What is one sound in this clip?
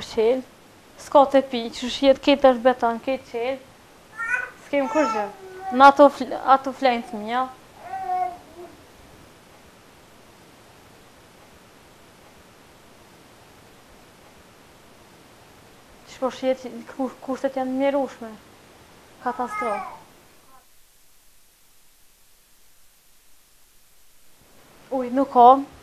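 A young woman talks nearby in a calm voice.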